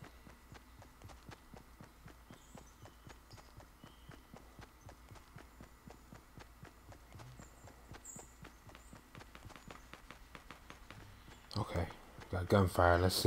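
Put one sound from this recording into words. Quick footsteps run over grass at a steady pace.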